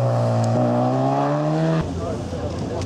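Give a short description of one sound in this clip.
A car engine revs loudly as a car speeds through a bend, its pitch climbing.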